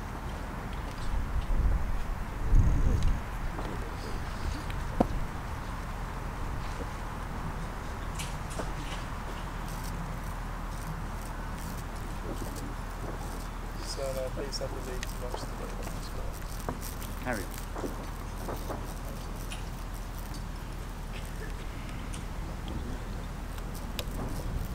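A man calls out commands outdoors, some way off.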